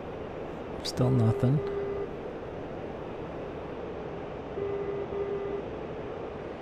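Warning tones beep in a cockpit.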